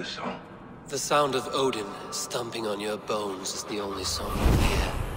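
A second man answers in a deep, gruff voice.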